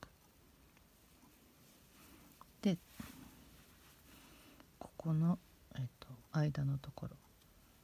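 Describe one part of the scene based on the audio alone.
A crochet hook softly pulls yarn through loops.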